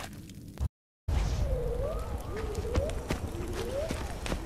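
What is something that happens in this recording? A torch fire crackles and roars close by.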